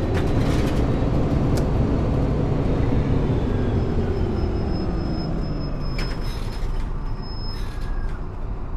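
A bus engine rumbles steadily as the bus drives and slows down.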